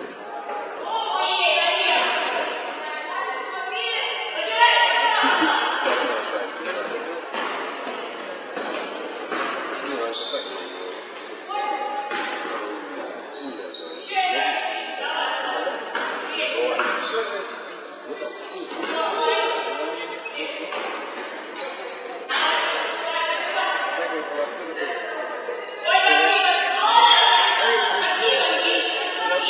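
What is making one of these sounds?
Sneakers squeak on a wooden court floor.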